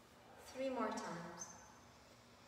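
A woman speaks briefly in a calm voice nearby.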